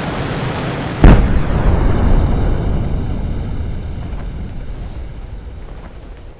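An explosion booms and rumbles as it slowly fades.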